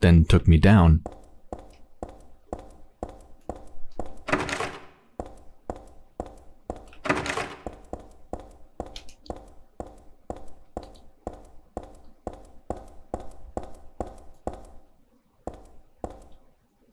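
Footsteps walk on a hard tiled floor.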